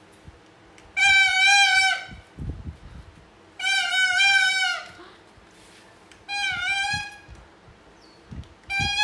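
A toy horn honks in short, loud blasts.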